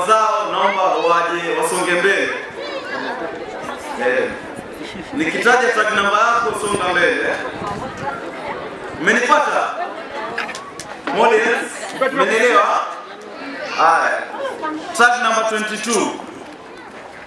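A young man speaks with animation into a microphone, heard through a loudspeaker.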